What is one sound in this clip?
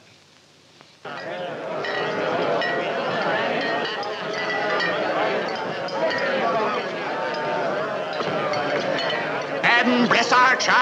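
A crowd of men outdoors chatters, shouts and cheers loudly.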